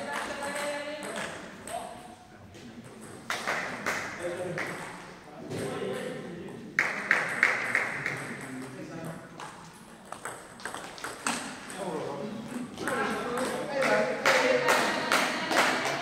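A table tennis ball clicks back and forth off paddles and the table in a large echoing hall.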